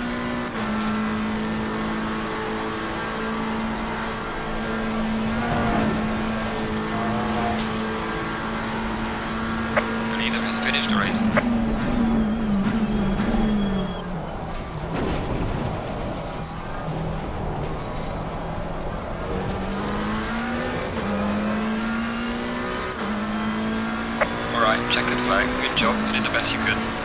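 A racing car engine roars steadily at high revs, drops in pitch under braking, then climbs again as it speeds up.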